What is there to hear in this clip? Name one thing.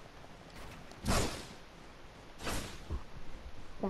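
A pickaxe swings with a sharp whoosh.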